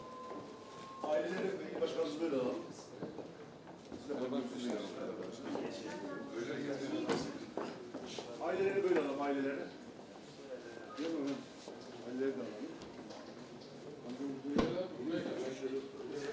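Several men and women talk among themselves nearby.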